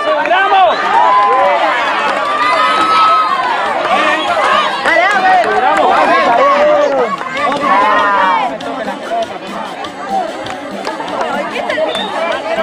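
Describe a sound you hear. A crowd of children shouts and cheers outdoors nearby.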